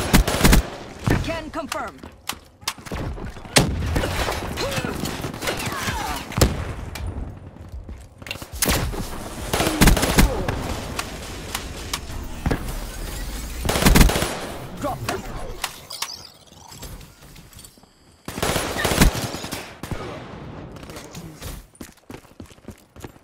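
Gunfire from a game rifle rattles in quick bursts.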